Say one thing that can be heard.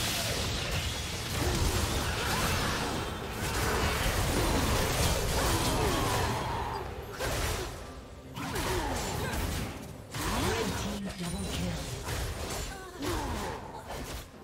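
Spell effects crackle and boom in a busy fight.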